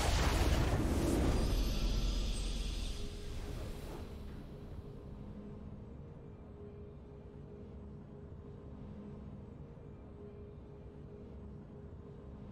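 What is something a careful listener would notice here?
A triumphant victory fanfare plays and fades.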